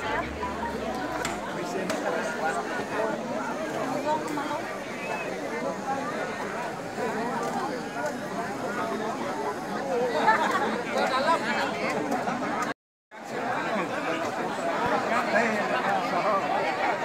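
A large crowd of men and women chatters loudly outdoors.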